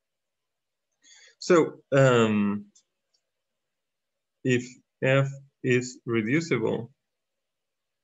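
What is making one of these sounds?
A man explains calmly through a microphone, in short bursts of speech.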